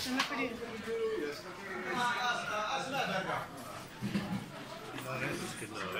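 Several men and women chatter nearby in a lively crowd.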